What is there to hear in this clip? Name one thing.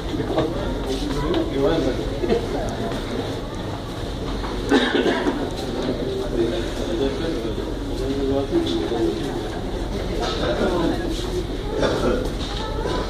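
Many footsteps shuffle on a hard floor.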